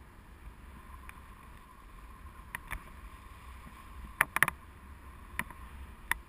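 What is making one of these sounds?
Wind rumbles and buffets steadily outdoors in the open air.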